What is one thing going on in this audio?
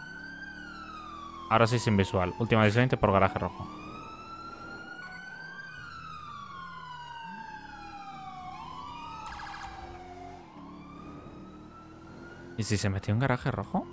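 A police siren wails, rising and falling slowly.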